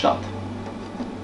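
A button clicks.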